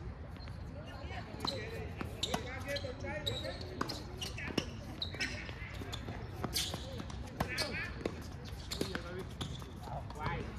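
Paddles strike a ball with sharp, hollow pops in a quick rally.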